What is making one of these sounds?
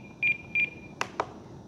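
Switches on a radio controller click.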